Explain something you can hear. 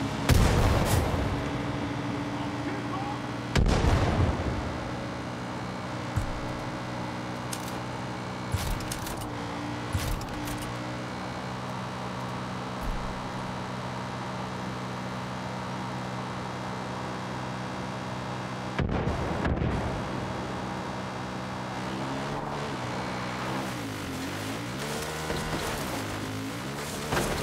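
A quad bike engine hums steadily as it drives.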